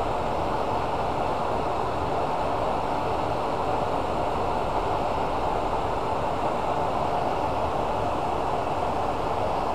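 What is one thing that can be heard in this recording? Sandpaper rubs against a spinning workpiece.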